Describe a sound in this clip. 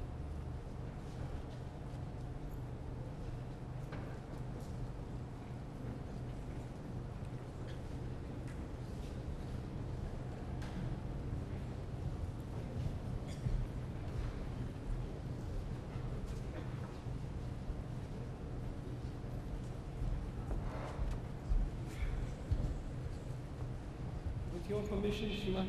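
A crowd murmurs and shuffles in a large hall.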